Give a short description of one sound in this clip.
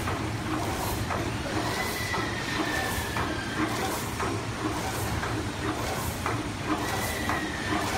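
A machine clacks rhythmically at a quick, regular pace.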